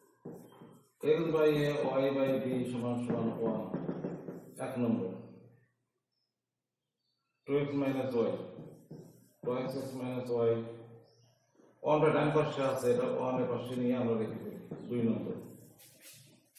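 An elderly man speaks calmly and clearly, as if teaching.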